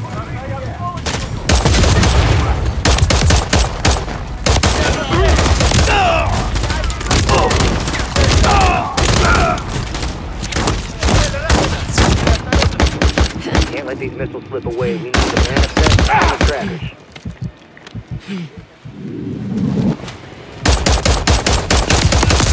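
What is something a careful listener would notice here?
Rapid gunshots crack and echo outdoors.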